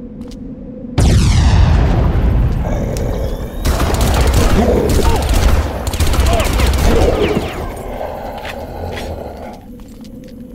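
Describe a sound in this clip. A rifle fires in rapid loud bursts.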